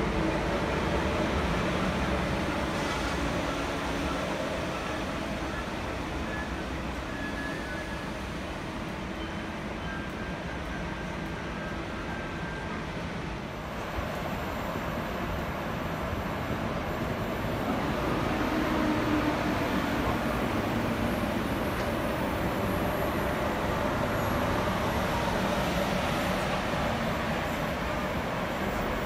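Train wheels rumble and clatter over the rails.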